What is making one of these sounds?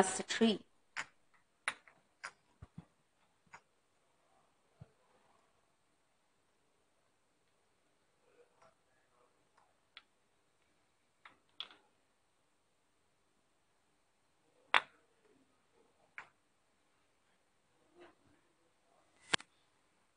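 Ceramic ornaments clink softly as a hand handles them.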